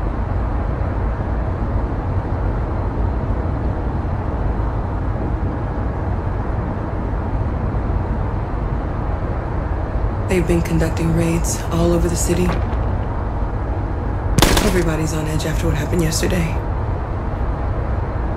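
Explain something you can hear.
A vehicle's engine hums steadily with a low rumble.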